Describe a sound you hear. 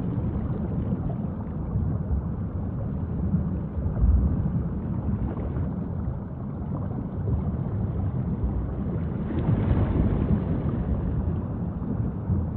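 Killer whales call underwater.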